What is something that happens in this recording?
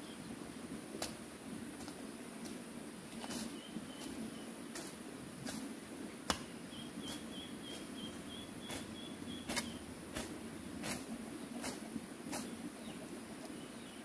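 A blade slashes through tall grass in quick, repeated strokes.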